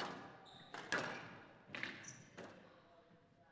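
A squash ball smacks against walls with sharp echoing thuds.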